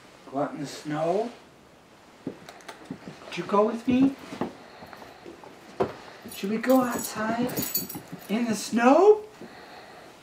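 A dog whines and yelps in rising cries.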